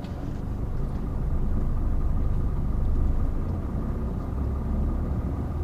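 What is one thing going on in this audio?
Wind rumbles steadily against a moving microphone outdoors.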